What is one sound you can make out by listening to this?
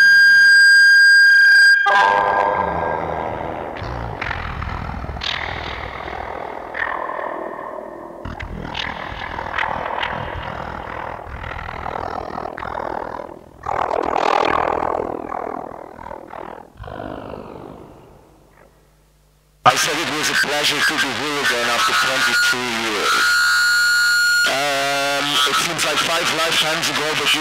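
Electronic music plays loudly with glitchy synthesized tones.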